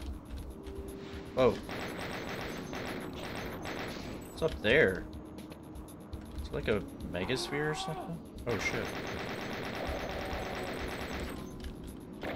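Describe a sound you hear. A chaingun fires rapid bursts of shots.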